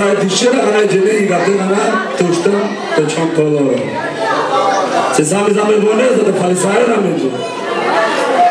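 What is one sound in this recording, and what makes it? A man speaks loudly through a microphone and loudspeakers in a large echoing hall.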